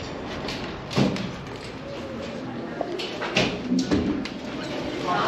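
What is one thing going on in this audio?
A glass door clicks and thuds as it opens.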